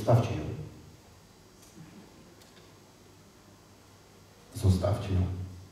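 A middle-aged man speaks with animation in a large echoing hall.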